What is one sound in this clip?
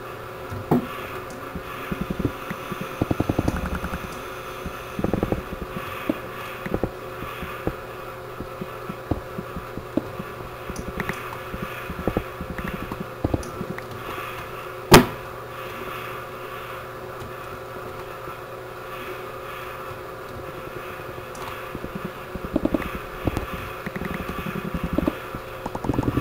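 Stone blocks crunch and crack as a pickaxe mines them, over and over.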